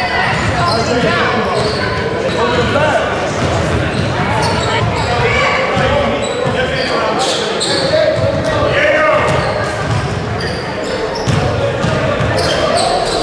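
Many children and adults chatter and shout in a large echoing hall.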